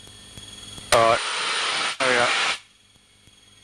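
A man speaks briefly through a headset intercom.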